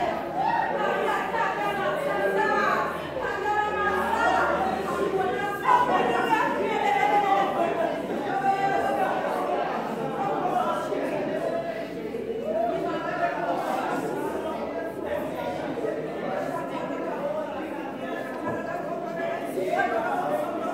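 A congregation calls out and murmurs in response.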